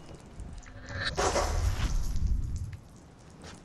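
A blade hacks into a body with a wet, crunching squelch.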